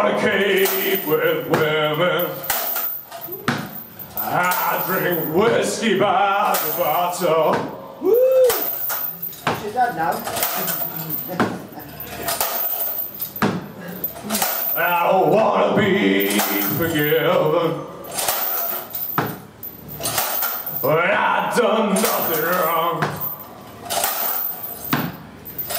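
A man sings loudly into a microphone, heard through loudspeakers in a room.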